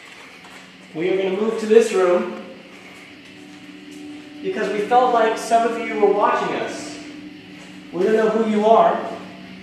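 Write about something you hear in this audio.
A young man speaks in a low voice in an echoing space.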